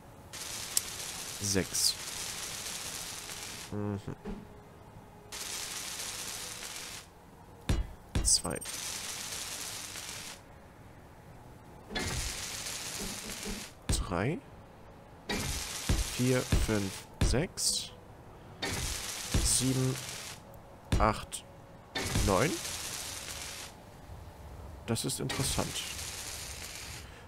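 A welding tool hisses and crackles in repeated bursts.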